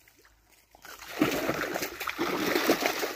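Fish thrash and splash in shallow water.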